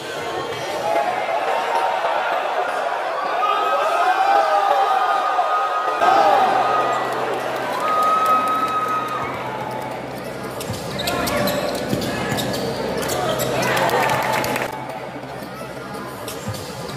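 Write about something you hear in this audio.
A crowd in a large echoing gym cheers and shouts.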